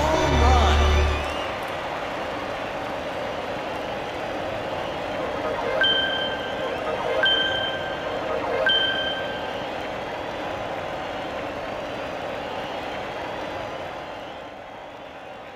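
A crowd cheers loudly in a stadium.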